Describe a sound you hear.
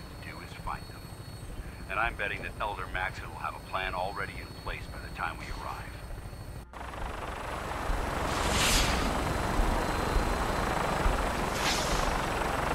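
A tiltrotor aircraft's engines and rotors roar steadily close by.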